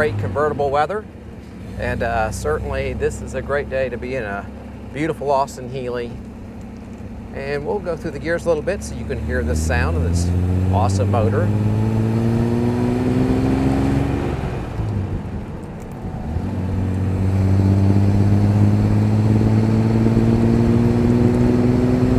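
A car engine hums and revs as it accelerates through the gears.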